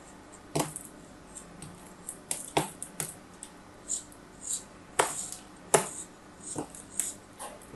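A small tool scrapes and cuts through crumbly sand in short, crackling bursts.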